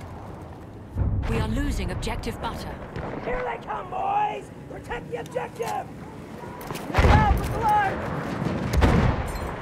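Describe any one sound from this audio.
Explosions boom nearby with deep rumbles.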